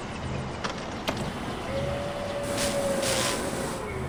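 A welding torch crackles and hisses against metal.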